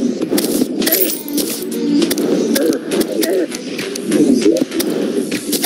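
Magic blasts pop and crackle in quick bursts.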